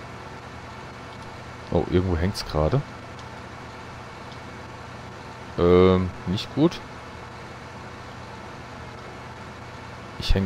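An excavator engine idles with a low, steady hum.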